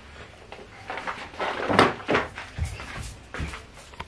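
A box is set down on a counter with a soft knock.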